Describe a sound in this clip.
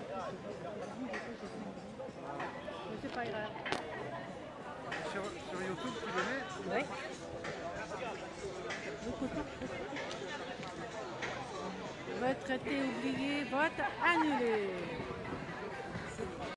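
A crowd of people chatter outdoors.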